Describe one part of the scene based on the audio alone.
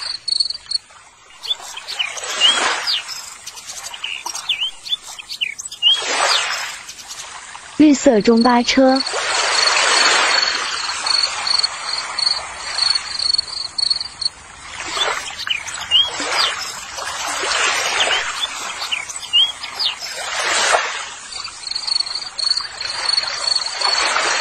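Water sloshes and splashes as a hand scrubs in a bucket.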